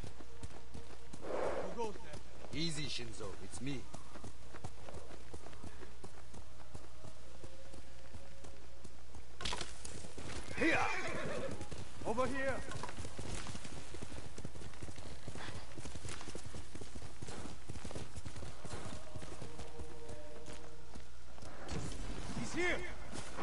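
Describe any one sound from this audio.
Horse hooves thud steadily in a gallop over soft ground.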